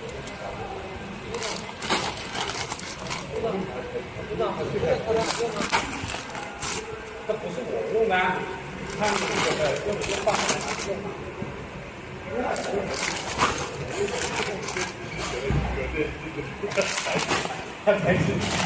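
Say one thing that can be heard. A bag of dried beans thuds down on a scale.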